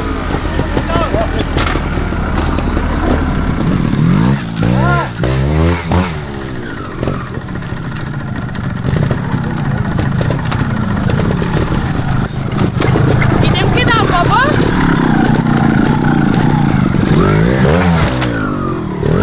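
A trials motorcycle engine revs in sharp, rising bursts.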